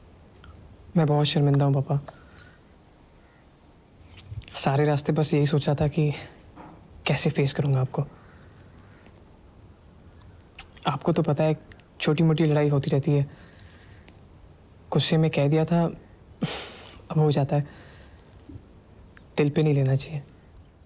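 An older man speaks calmly and close by, in short phrases with pauses.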